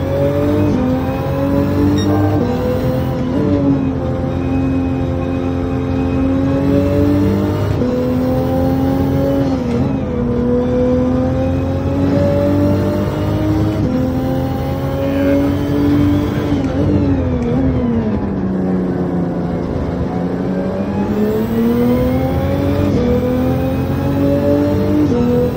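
A racing car engine roars loudly, its pitch climbing through the gears and dropping as it slows for corners.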